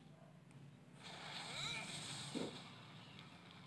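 A game's sword attack whooshes and swirls.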